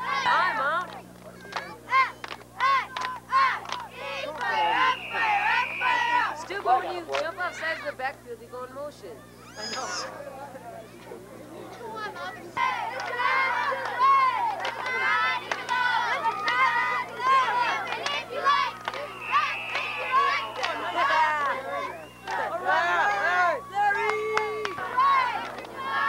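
A crowd of adults and children shout and cheer outdoors.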